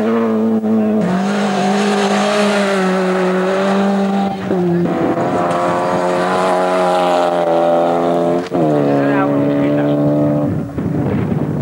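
A rally car engine roars at high revs, dropping in pitch with each gear change.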